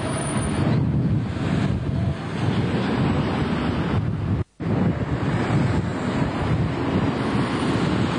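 Cars pass close by.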